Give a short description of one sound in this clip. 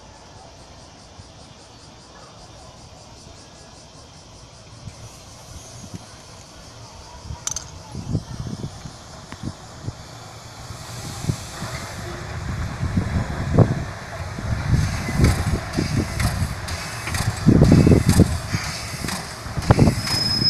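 A steam locomotive approaches and rumbles past close by, growing louder.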